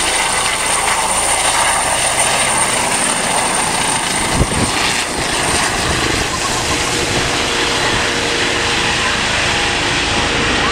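A helicopter's rotor roars and whirs close overhead.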